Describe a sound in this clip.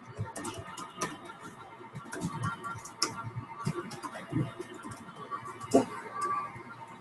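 Keys clatter quickly on a computer keyboard.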